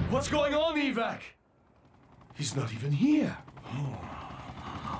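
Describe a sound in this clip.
A man speaks in a deep, gruff voice.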